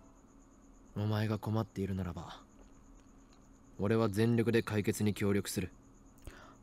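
A young man reads aloud into a close microphone.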